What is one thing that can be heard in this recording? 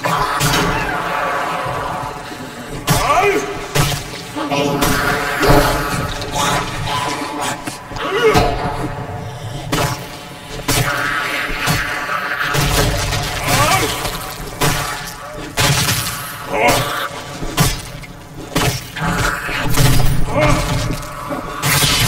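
Zombies growl and snarl close by.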